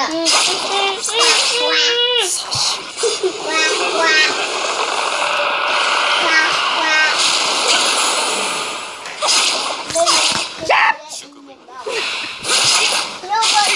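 Magic blasts and sword slashes crash and whoosh in a fighting game.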